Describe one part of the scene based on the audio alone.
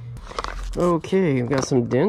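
A plastic lid clicks off a container.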